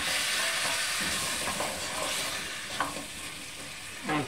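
Vegetables sizzle softly in a pot.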